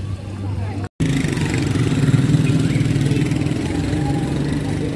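A motorcycle engine runs as a motorcycle rides past.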